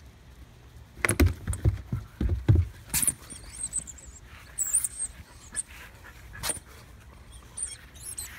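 Dogs scuffle and thump playfully on grass close by.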